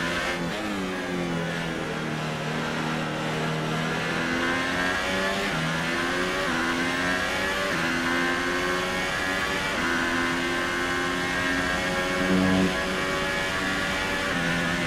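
A racing car engine revs high and shifts up through the gears.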